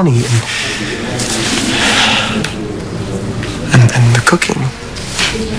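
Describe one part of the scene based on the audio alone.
A man speaks quietly and tensely nearby.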